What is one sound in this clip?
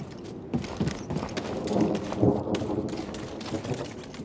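Footsteps run over rough gravel.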